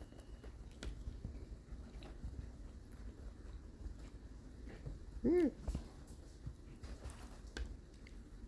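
A hen pecks at a bread roll.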